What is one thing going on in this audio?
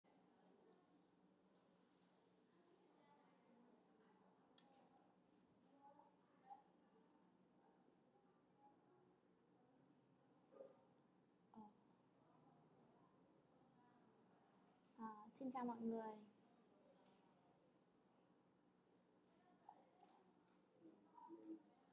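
A young woman speaks calmly and quietly into a headset microphone.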